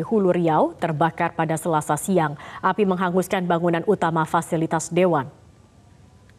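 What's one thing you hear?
A young woman reads out the news clearly through a microphone.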